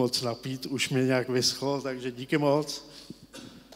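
An older man speaks through a microphone in a hall.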